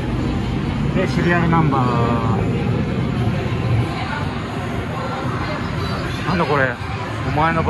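An arcade game plays bright electronic jingles and chirps.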